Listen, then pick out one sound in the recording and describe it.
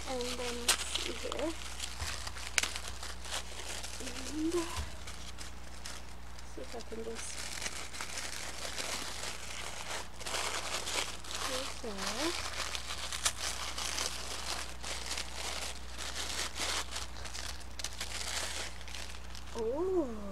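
Tissue paper rustles and crinkles as it is folded and crumpled.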